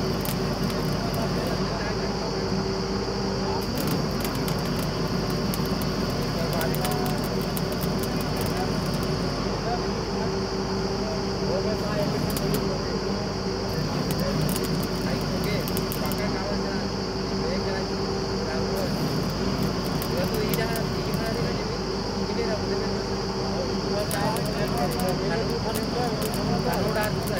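An electric welder crackles and hisses in bursts.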